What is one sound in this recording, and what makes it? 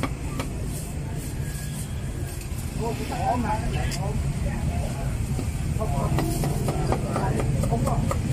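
A cleaver chops on a wooden board with sharp knocks.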